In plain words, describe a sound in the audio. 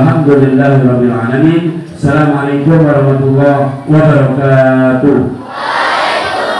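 A man chants in a drawn-out, melodic voice through a microphone.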